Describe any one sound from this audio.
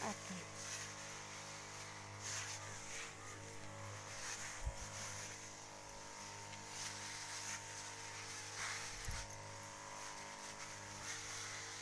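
Spray hisses from a nozzle in short bursts.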